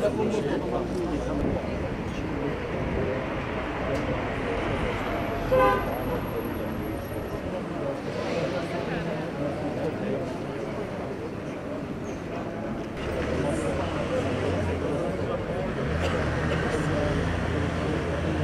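A crowd of protesters chants loudly outdoors.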